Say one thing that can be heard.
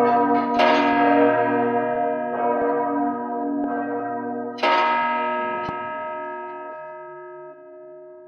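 A large bell tolls loudly and rings on, slowly fading.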